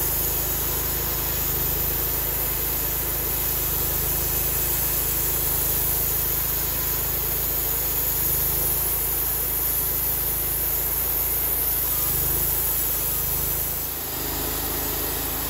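A bandsaw blade cuts through a seasoned red oak log.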